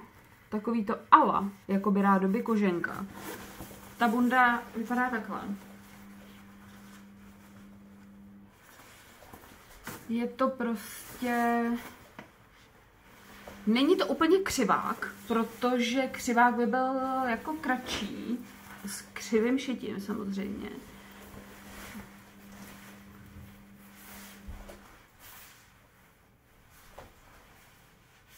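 Fabric rustles as a woman handles a jacket.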